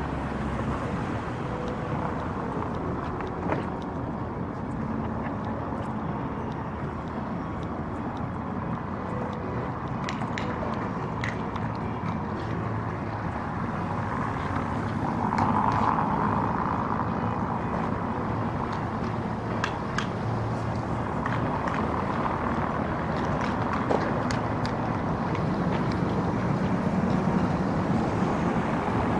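Outdoors in the open, traffic hums steadily on a nearby street.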